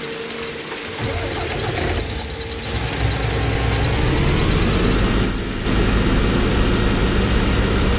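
A truck engine starts and rumbles, revving up as the truck drives off.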